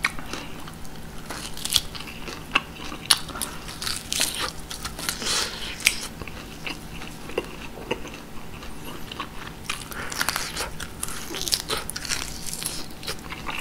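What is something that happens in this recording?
Crispy meat crunches and tears between teeth.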